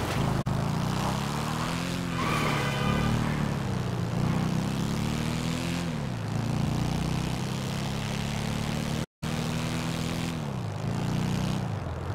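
A motorcycle engine roars steadily, revving up and dropping as gears shift.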